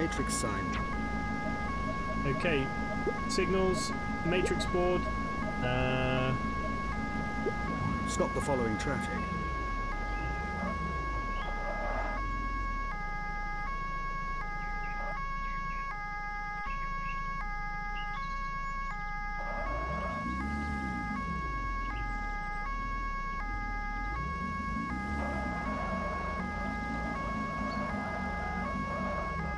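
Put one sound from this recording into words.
A two-tone police siren wails steadily.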